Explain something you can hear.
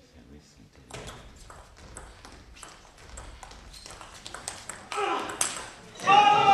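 A table tennis ball clicks quickly back and forth off paddles and a table.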